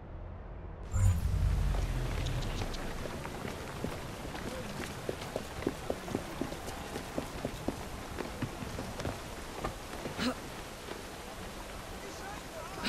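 Footsteps clatter on cobblestones outdoors.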